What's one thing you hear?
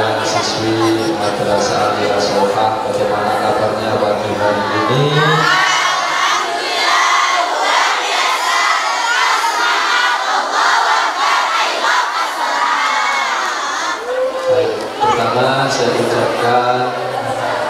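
A man speaks into a microphone through loudspeakers in an echoing room.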